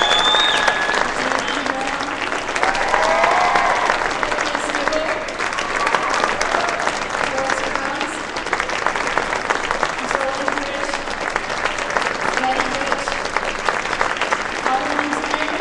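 A large crowd of children and adults chatters and murmurs in a large echoing hall.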